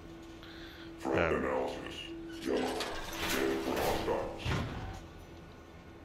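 A heavy metal door grinds and rumbles open.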